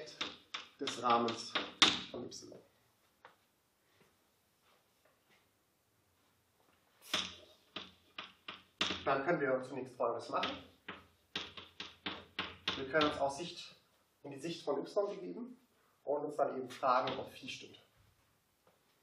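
A young man speaks calmly in a lecture, with a slight echo.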